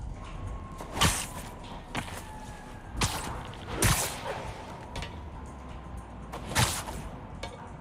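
Web lines shoot with sharp whooshing snaps.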